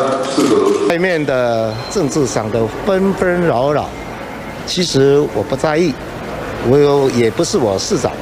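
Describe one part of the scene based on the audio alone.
A middle-aged man speaks calmly to reporters' microphones.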